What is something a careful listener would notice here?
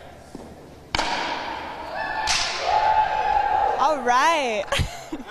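A ball smacks sharply against a wall in an echoing hall.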